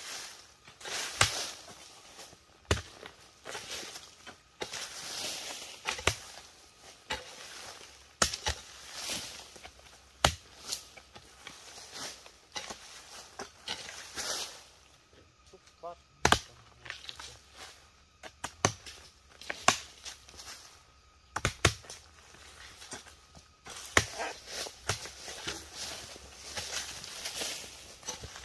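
Dry leaves and soil rustle as they are dragged aside.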